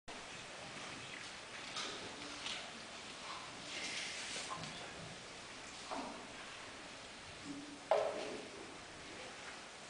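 An orchestra plays softly in a large echoing hall.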